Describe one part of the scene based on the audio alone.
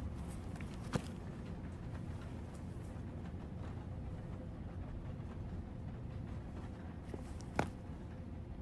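Fingers tap on a hard book cover.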